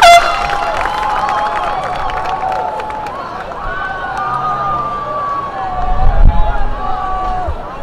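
A crowd cheers and whistles outdoors.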